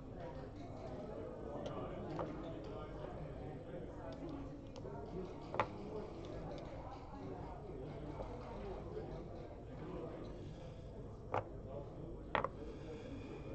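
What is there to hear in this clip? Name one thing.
Game checkers click and clack as a hand moves them on a wooden board.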